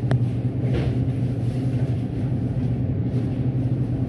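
A plastic jar is picked up and handled.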